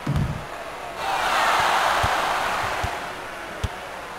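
A crowd cheers loudly, then fades.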